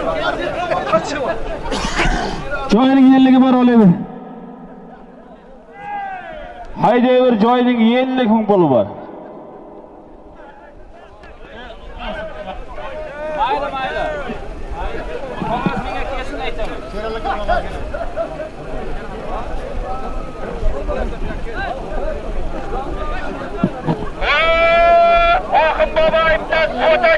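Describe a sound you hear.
A crowd of men shouts and chatters outdoors.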